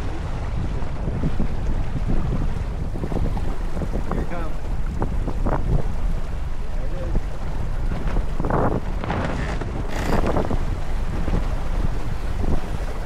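Wind rumbles loudly across a microphone outdoors.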